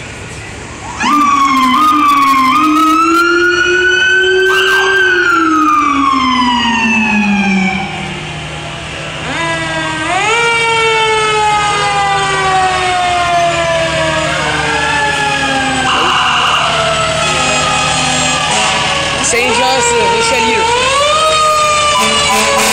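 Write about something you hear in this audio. Fire truck sirens wail loudly, rising and falling.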